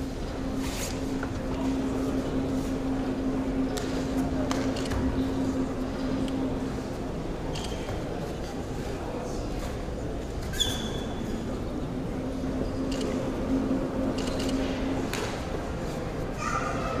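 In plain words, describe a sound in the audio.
A seated crowd murmurs in a large echoing hall.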